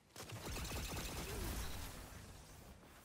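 Heavy gunfire booms and crackles.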